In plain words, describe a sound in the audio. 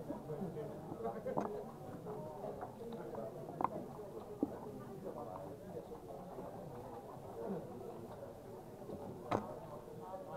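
Backgammon checkers click as they are moved on a board.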